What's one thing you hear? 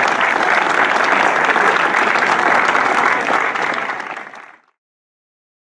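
A crowd claps along outdoors.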